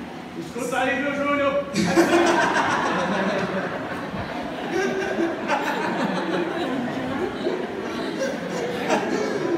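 A man preaches with animation into a microphone through loudspeakers, in an echoing hall.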